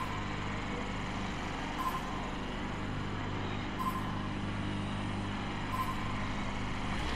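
A motorcycle engine idles with a steady low hum.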